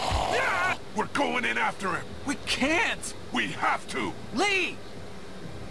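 A man speaks urgently and tensely.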